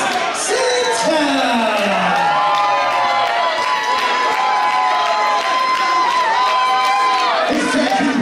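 A man announces loudly through a microphone, drawing out his words over a loudspeaker.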